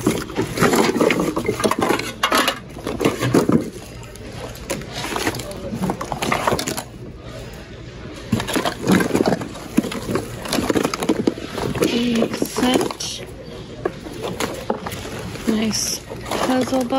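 Plastic packaging and paper rustle and crinkle as items are rummaged through by hand.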